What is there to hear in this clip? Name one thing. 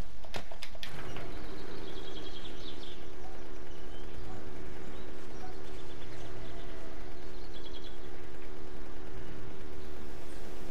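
A small motorbike engine hums steadily.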